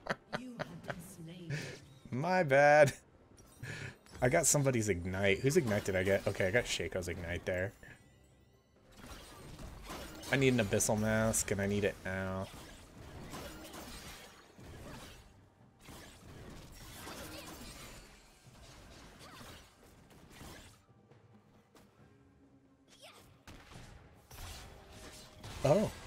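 Game sound effects chime and whoosh.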